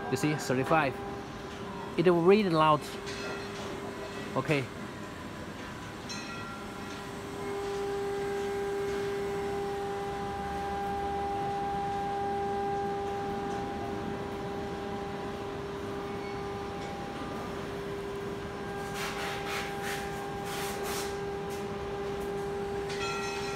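A gaming machine gives off a steady electronic hum.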